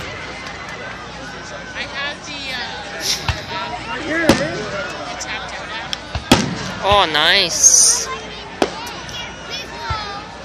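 Fireworks whistle as they rise.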